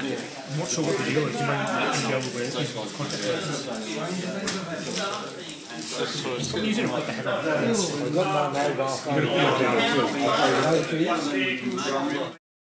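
Plastic parts click and rustle in hands.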